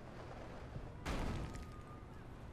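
A heavy thud lands with a crash.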